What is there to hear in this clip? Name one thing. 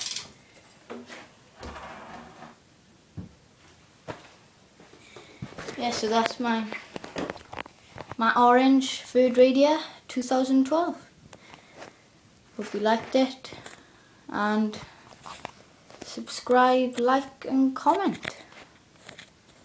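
A bicycle clicks and rattles as it is moved about.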